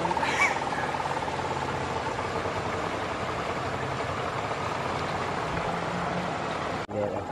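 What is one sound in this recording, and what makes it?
River water flows and swirls.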